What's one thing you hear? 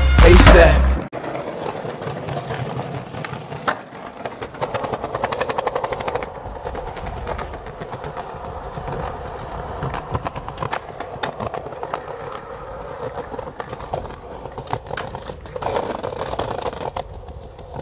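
Skateboard wheels roll on concrete.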